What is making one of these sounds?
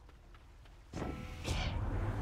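A shimmering magical burst rings out.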